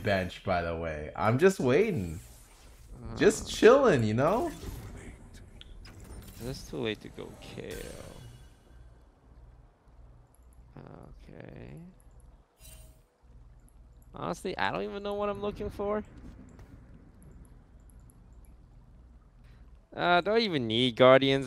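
A young man talks with animation into a close microphone, pausing now and then.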